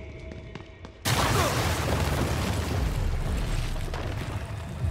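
A loud roaring blast bursts out.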